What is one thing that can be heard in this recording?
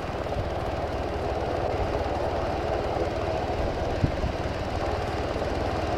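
A helicopter's rotor thumps nearby.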